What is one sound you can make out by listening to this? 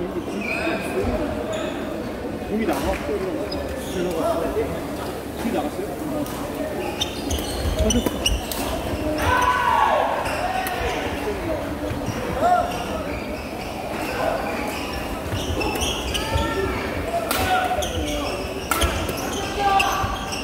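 Shuttlecocks are struck sharply with rackets, again and again.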